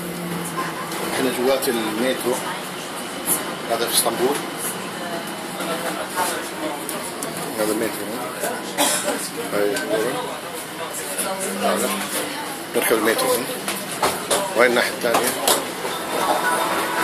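Passengers chatter around in a crowded carriage.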